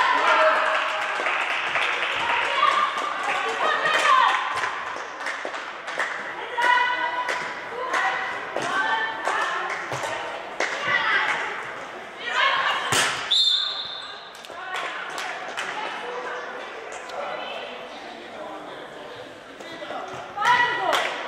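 Players' voices call out in a large echoing hall.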